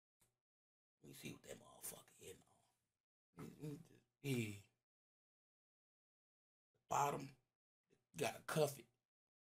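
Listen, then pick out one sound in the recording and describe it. A man talks casually and close by, in short bursts with pauses.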